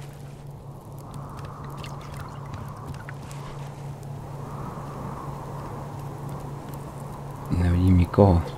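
Rain falls steadily.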